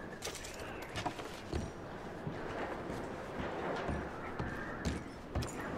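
Heavy boots thud slowly on a wooden floor.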